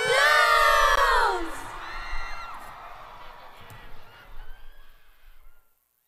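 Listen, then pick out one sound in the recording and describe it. A large crowd of young fans screams and cheers loudly in a big echoing hall, then fades away.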